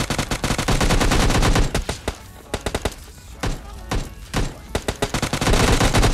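An automatic gun fires in rapid bursts.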